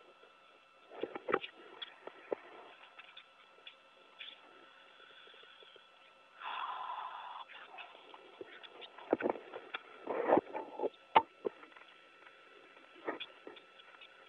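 Metal latches clunk and knock as a hatch is worked.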